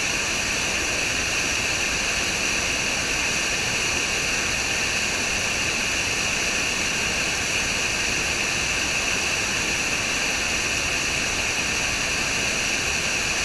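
A small waterfall rushes and splashes steadily over rocks into a pool.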